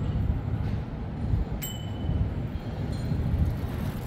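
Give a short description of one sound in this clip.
A bicycle rolls past on paving stones.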